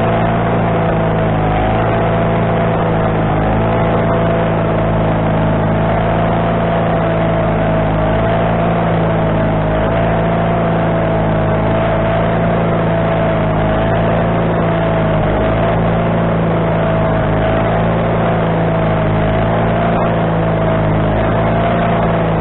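A band saw blade whines as it cuts through a log.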